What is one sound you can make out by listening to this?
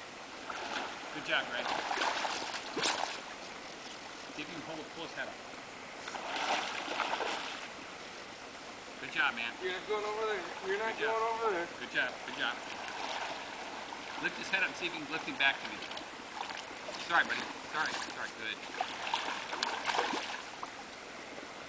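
A hooked fish splashes and thrashes in the water.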